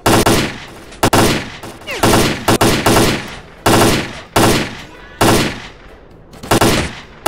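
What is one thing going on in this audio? Gunshots ring out again and again, each one echoing away.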